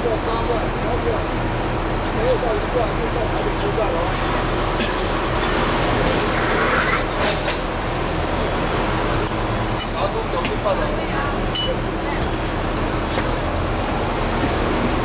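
Traffic passes by on a city street.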